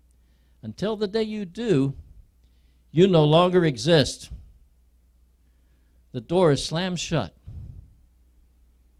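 An older man preaches with animation through a microphone and loudspeakers, in short bursts with pauses.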